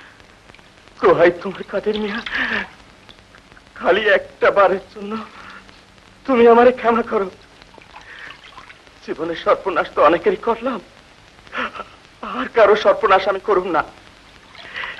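An elderly man speaks with feeling in short, pleading bursts, close by.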